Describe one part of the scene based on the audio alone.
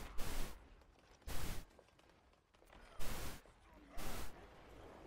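A pistol fires loud bursts of shots in short volleys.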